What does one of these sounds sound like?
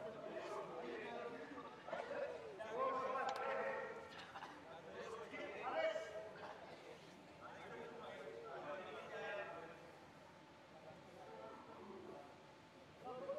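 Men shout and call out to each other across a large echoing indoor hall.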